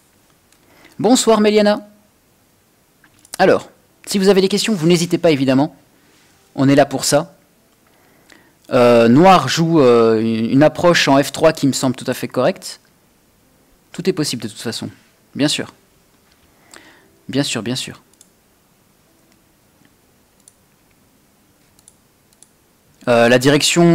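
A young man speaks calmly and close into a microphone, in short bursts.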